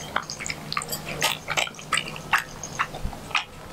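A dog crunches and chews dry food from a bowl.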